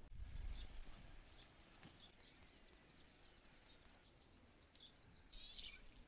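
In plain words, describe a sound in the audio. Hands scrape and pat loose soil.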